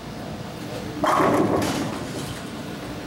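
Pins crash and scatter at the end of a bowling lane.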